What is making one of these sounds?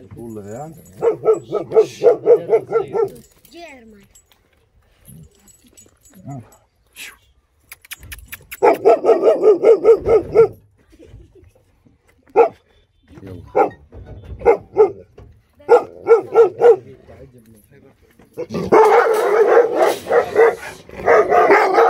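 A dog barks rapidly and repeatedly nearby.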